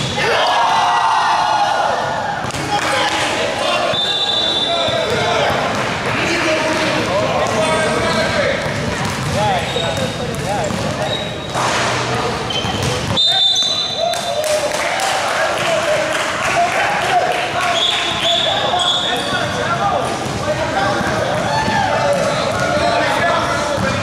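Players and spectators shout and call out in a large echoing hall.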